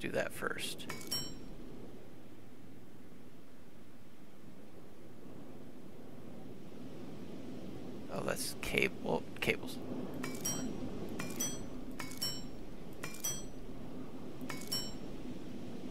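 Short electronic menu clicks and chimes sound.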